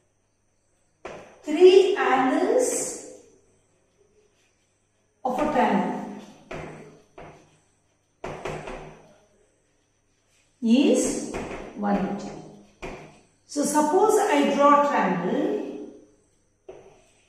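A woman speaks calmly, as if teaching.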